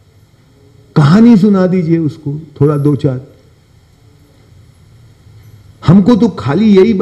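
A middle-aged man speaks with animation into a microphone, in pauses.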